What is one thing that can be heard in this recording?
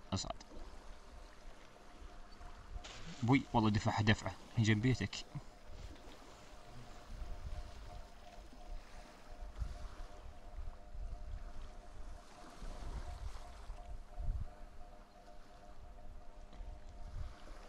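Water splashes as a swimmer moves through it.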